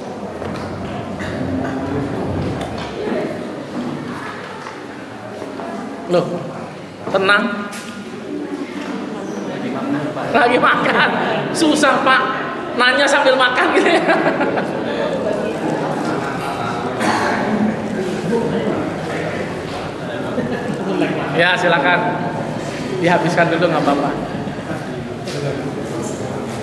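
A middle-aged man speaks with animation through a microphone in an echoing room.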